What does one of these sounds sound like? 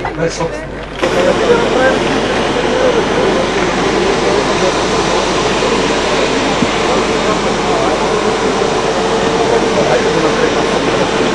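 A crowd murmurs steadily outdoors.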